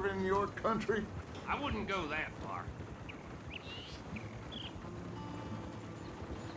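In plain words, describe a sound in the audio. A wagon's wheels rumble and creak over a dirt track.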